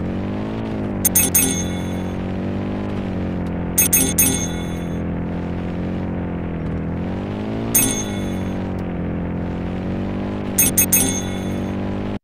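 Bright chimes ring out now and then as coins are collected.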